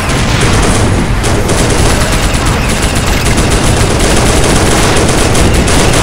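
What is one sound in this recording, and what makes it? A tank cannon fires with heavy thuds.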